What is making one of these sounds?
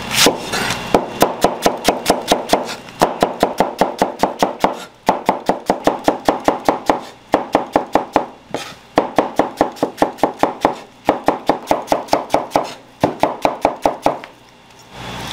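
A cleaver chops rapidly through onions on a cutting board.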